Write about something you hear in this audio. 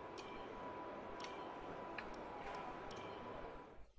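Game menu clicks sound sharply several times.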